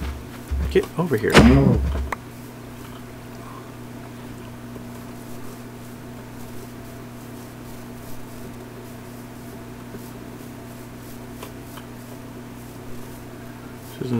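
Footsteps tread on grass.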